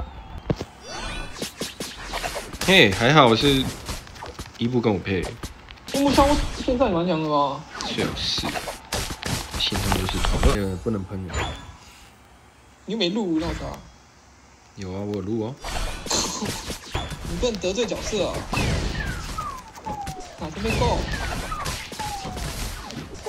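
Electronic zaps and blasts of a video game battle crackle in bursts.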